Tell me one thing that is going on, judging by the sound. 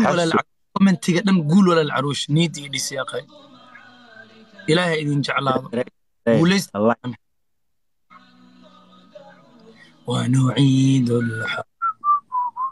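A young man talks with animation, heard through a phone microphone.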